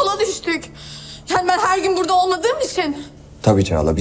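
A young woman speaks tearfully, close by.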